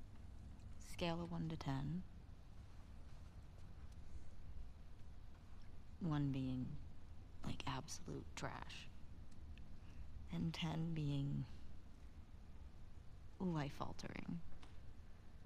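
A young woman speaks softly and playfully, close by.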